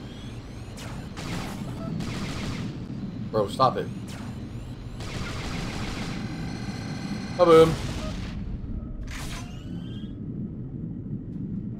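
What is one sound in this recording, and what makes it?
A man talks into a headset microphone.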